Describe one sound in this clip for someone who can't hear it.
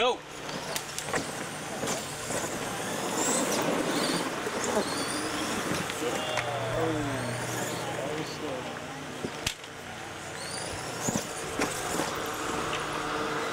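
Small electric motors whine as toy monster trucks race over dirt.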